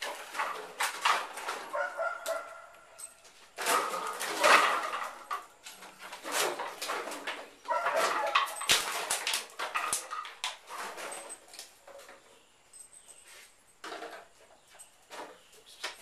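Plastic bottles rattle and clatter as a dog walks over them.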